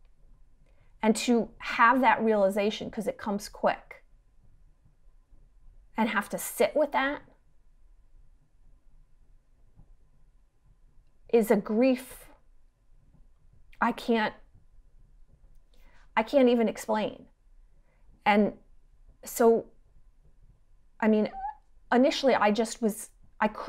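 A middle-aged woman speaks calmly into a microphone, with pauses, as if on an online call.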